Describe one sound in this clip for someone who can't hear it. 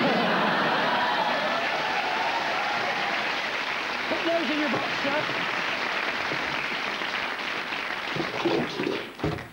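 An audience applauds in a large studio.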